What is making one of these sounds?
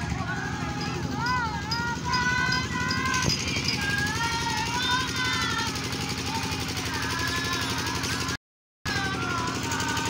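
A group of women sing together.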